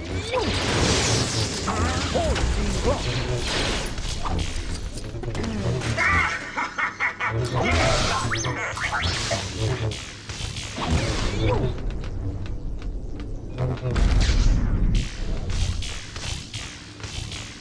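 Laser blasts fire and explode in quick bursts.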